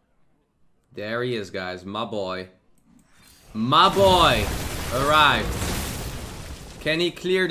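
A young man talks with animation, close into a microphone.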